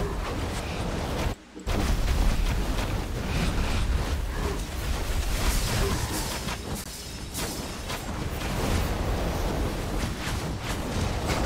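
Game spells crackle and explode with electric zaps.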